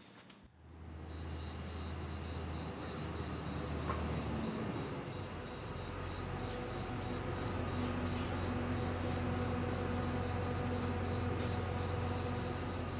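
A bus engine hums steadily as the bus drives slowly closer.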